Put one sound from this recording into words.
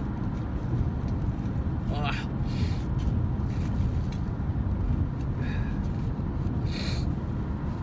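A young man blows his nose into a tissue.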